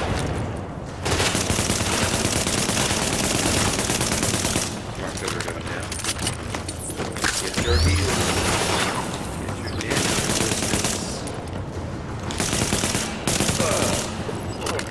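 Gunfire rattles in loud bursts.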